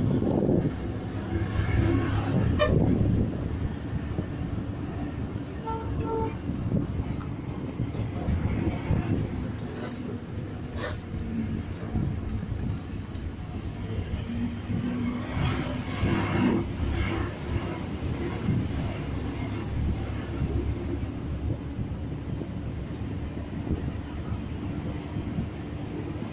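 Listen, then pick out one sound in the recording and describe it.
Wind rushes past an open bus window.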